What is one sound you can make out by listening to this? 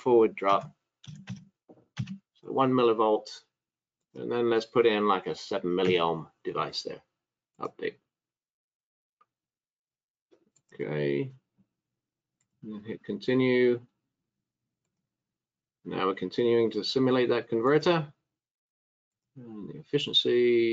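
A middle-aged man talks calmly into a close microphone, with pauses.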